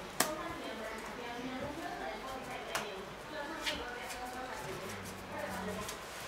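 Playing cards slap and rustle on a table.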